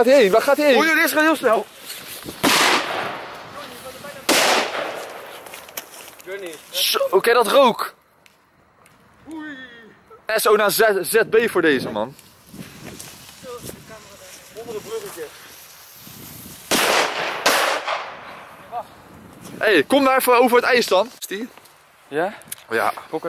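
Young men shout and laugh excitedly nearby.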